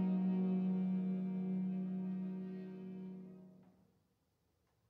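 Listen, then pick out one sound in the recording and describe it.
A violin, a horn and a piano sustain a final chord that rings out in an echoing hall.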